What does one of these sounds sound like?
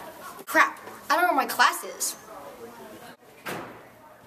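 A young girl speaks with animation, close by.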